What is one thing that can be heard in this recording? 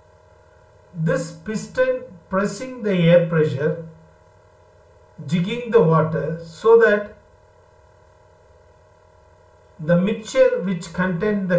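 A middle-aged man speaks calmly into a microphone, explaining in pauses.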